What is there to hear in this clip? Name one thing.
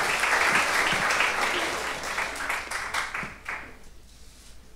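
An audience applauds loudly in a large hall, then the applause dies away.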